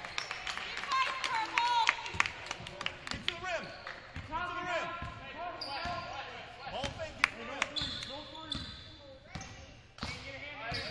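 Basketball shoes squeak sharply on a gym floor.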